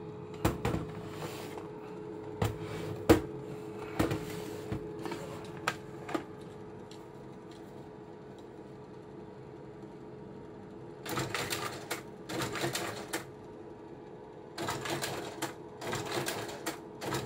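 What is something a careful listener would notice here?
A slide projector hums steadily with its fan running.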